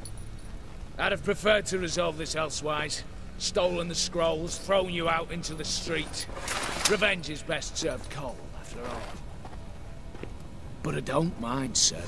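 A man speaks calmly and coldly in a low voice.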